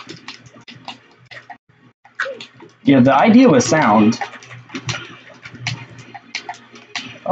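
Quick punches and hits from a video game fight snap and crack.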